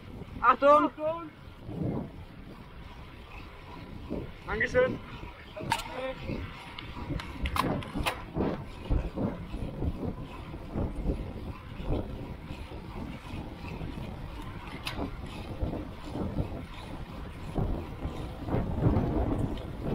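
Wind buffets the microphone while cycling fast outdoors.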